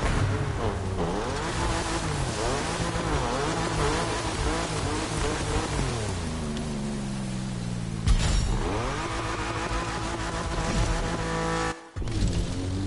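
A car engine revs hard and shifts through gears.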